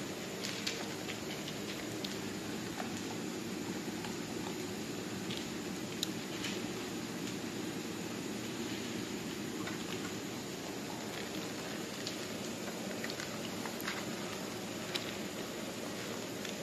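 Two dogs crunch dry kibble, chewing noisily.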